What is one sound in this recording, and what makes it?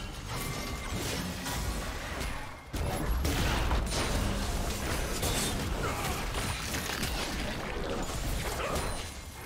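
Game spell effects whoosh and crackle during a fast battle.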